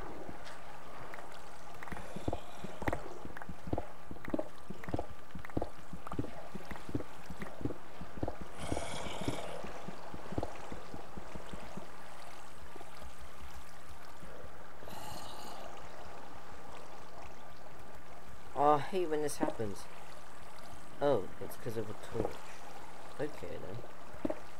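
Water trickles and splashes steadily.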